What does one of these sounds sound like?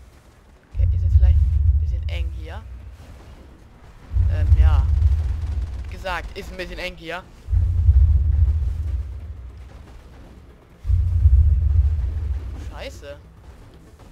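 An armoured vehicle's cannon fires with deep, rumbling booms every few seconds.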